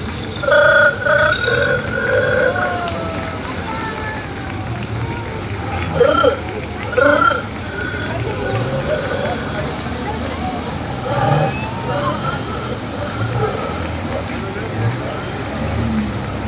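Vintage car engines rumble slowly past.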